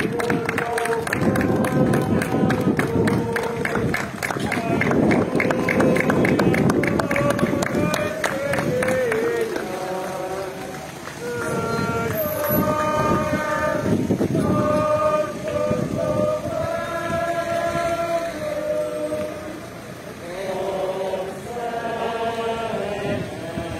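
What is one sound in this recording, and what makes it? A crowd of men and women sings a slow hymn outdoors.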